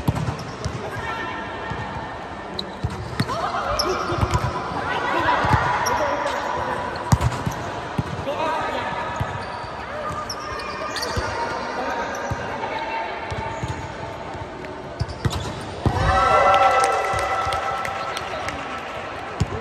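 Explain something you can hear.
Young women call out to each other in a large echoing hall.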